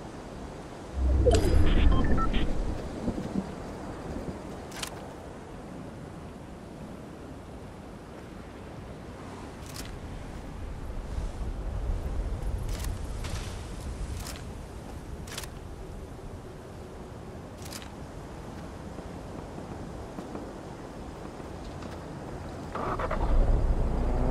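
Leaves rustle loudly as someone pushes through bushes.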